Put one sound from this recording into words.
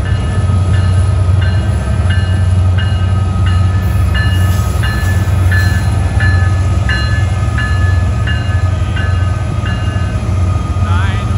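A level crossing bell rings.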